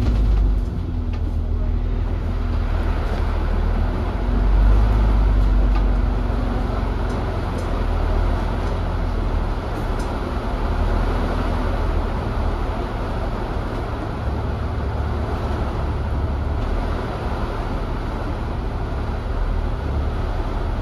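A bus engine rumbles steadily while driving.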